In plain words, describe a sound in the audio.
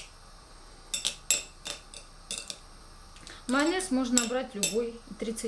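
A spoon clinks against a glass bowl.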